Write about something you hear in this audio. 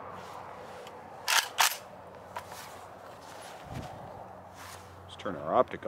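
A rifle's metal parts click and clack as it is handled.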